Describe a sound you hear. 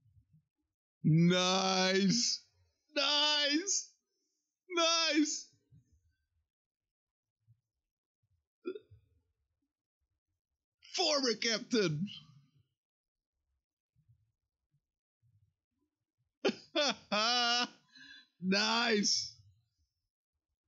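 A young man laughs and exclaims with animation close to a microphone.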